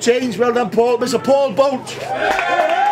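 A man announces loudly to an outdoor crowd.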